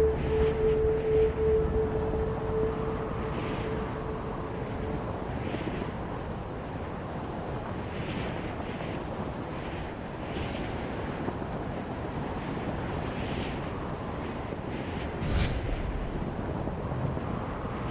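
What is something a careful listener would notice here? Wind rushes steadily past a glider in flight.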